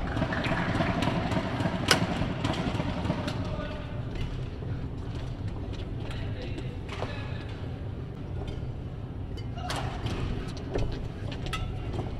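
A badminton racket smacks a shuttlecock back and forth.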